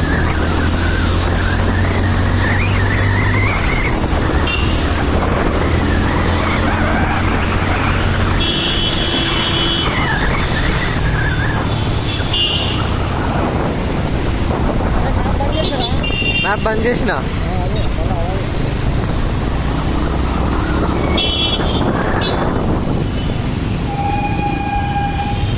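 Wind rushes past noisily.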